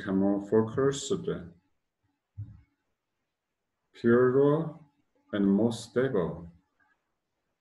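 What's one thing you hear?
A man speaks calmly and slowly, close to the microphone, with long pauses.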